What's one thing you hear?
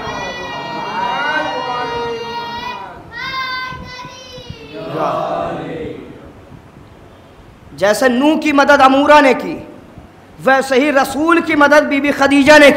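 A young man chants melodiously into a microphone.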